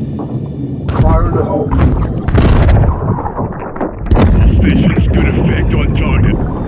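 A deep underwater explosion booms and rumbles.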